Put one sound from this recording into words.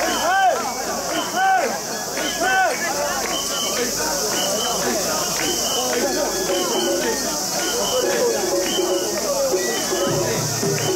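A crowd of men chant loudly in rhythm close by.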